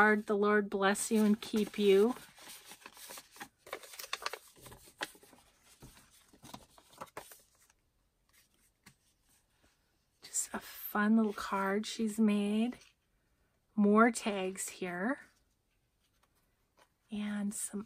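Paper cards rustle and tap softly as hands handle them.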